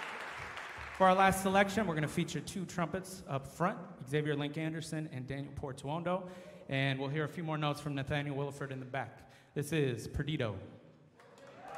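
A man sings into a microphone through loudspeakers in a large hall.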